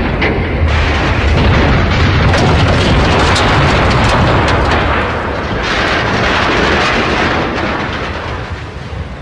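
A fiery explosion roars and rumbles.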